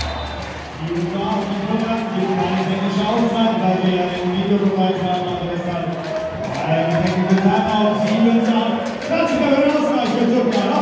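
Spectators clap along in rhythm.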